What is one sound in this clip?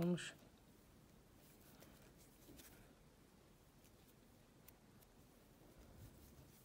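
A crochet hook pulls yarn through stitches with faint scratches.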